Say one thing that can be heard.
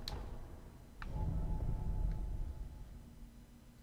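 A shimmering magical whoosh swells and fades.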